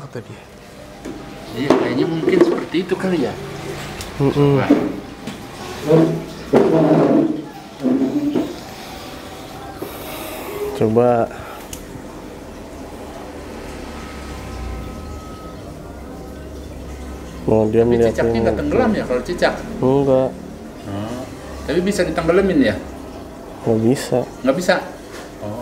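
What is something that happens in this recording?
An aquarium filter pump hums steadily.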